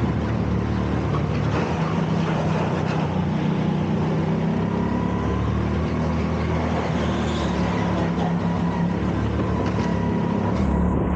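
A go-kart engine drones loudly up close.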